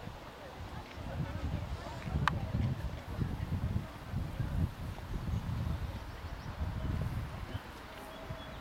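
A horse canters over soft sand with dull hoof thuds.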